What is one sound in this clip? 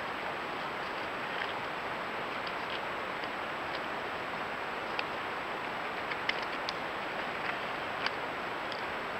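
Claws scratch and click on dry bark close by.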